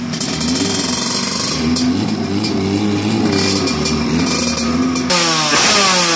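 A motorcycle engine revs loudly and roughly up close.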